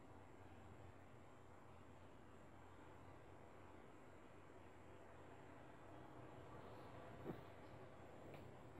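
A small metal tool clicks faintly against a watch movement.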